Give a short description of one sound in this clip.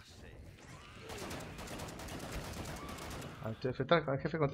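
Rapid gunfire rattles nearby.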